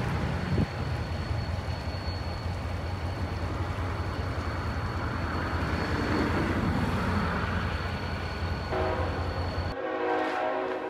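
A diesel locomotive rumbles past at low pitch.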